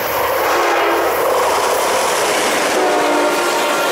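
Train wheels clatter and roar on the rails as the cars rush past close by.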